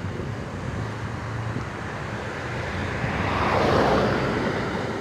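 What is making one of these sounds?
Wind rushes past a moving bicycle outdoors.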